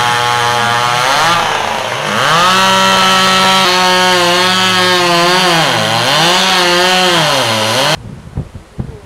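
A chainsaw revs loudly and cuts through wood close by.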